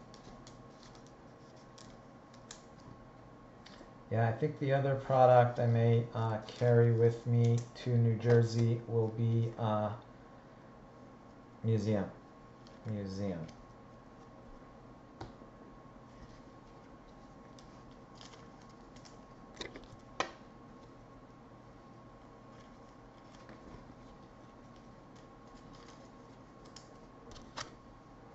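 Trading cards rustle and click as hands sort them.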